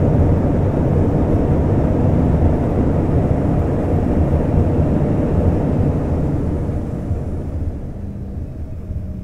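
A jet engine roars loudly close by, heard from inside the cabin, and slowly quiets.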